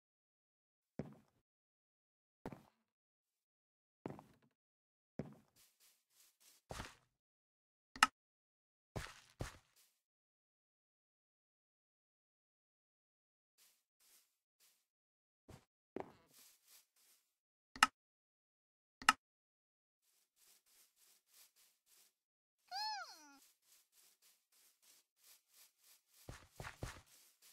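Footsteps thud on the ground in short bursts.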